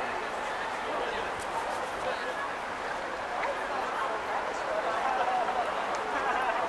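A crowd of people chatters and murmurs outdoors.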